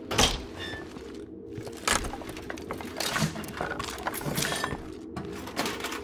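Rummaging clatters through a container.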